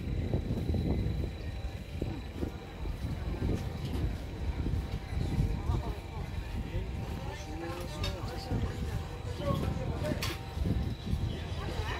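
Men and women chat quietly at nearby tables.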